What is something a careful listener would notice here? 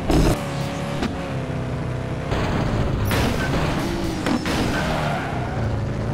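A car crashes with a loud thud.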